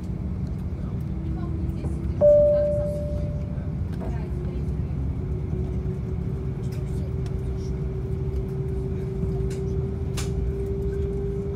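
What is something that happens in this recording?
A jet engine whines with a slowly rising pitch as the aircraft starts moving.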